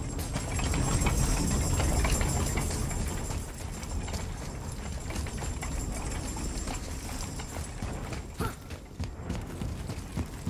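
Heavy footsteps thud on a hard floor.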